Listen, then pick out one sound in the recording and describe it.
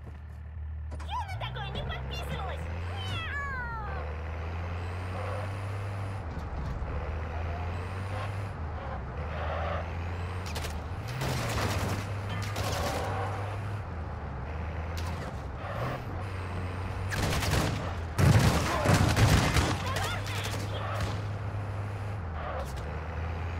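An armoured truck's engine rumbles steadily as it drives, its pitch rising and falling as it speeds up and slows.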